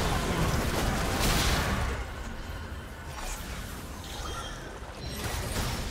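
Game spells whoosh and crackle during a fight.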